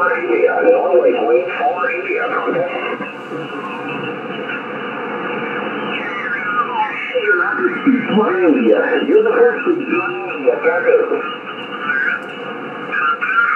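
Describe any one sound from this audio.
Garbled voices come through a radio loudspeaker over a steady hiss.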